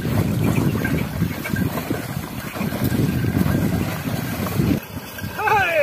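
A wooden cart rumbles and creaks as it is pulled out of water.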